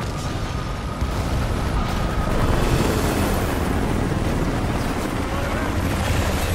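A helicopter's rotor thumps close by.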